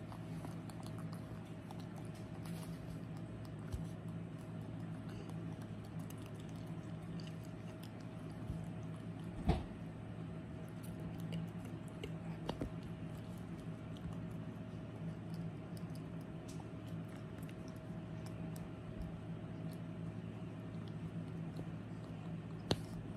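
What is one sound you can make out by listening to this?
A small monkey rustles and picks through hair close by.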